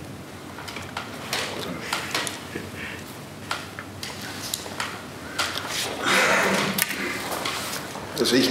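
A second man speaks calmly through a microphone.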